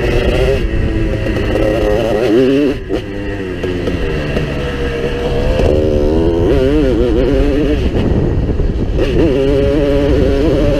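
A dirt bike engine revs and roars up close, rising and falling with each throttle change.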